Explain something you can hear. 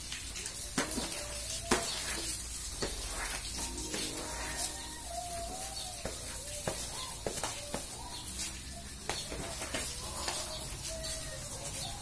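A broom scrapes and sweeps across a tiled floor.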